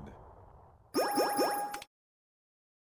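A victory jingle chimes.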